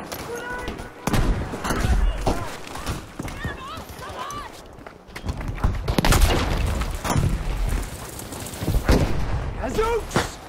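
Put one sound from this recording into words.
Explosions thud heavily close by.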